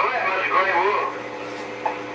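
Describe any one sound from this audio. A man's voice speaks briefly through a radio loudspeaker.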